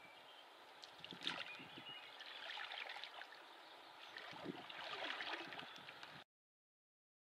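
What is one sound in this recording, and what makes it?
Water laps and splashes gently against a canoe hull.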